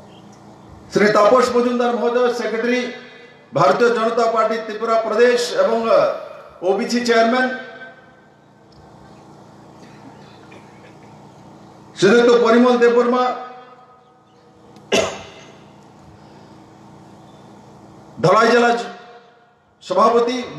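A man gives a speech loudly through a microphone and loudspeakers outdoors, in bursts with pauses.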